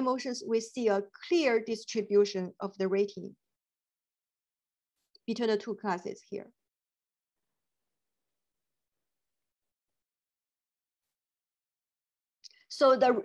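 A middle-aged woman speaks calmly over an online call, pausing between phrases.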